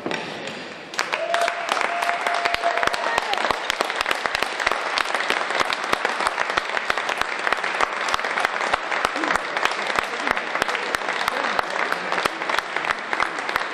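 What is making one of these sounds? A crowd claps in rhythm in a large echoing hall.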